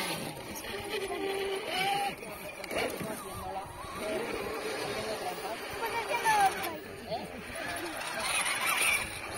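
A small electric motor whines as a toy truck climbs over rock.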